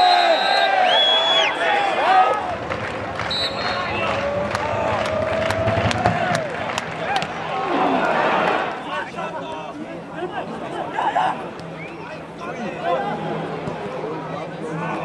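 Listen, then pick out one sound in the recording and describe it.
A crowd of fans chants and cheers loudly outdoors.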